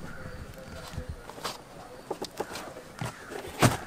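A knife scrapes and cuts through thick rubber.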